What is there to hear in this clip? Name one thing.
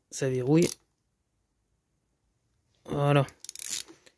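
Small metal engine parts clink as a hand handles them.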